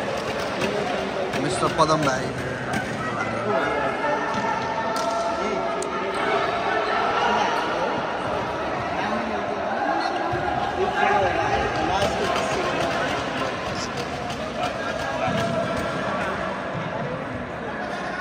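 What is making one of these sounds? A crowd of young people chatters and shouts in a large echoing hall.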